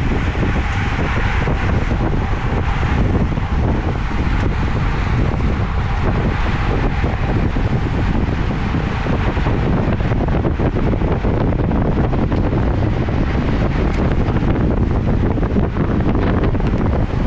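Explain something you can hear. Strong wind buffets a microphone on a moving bicycle.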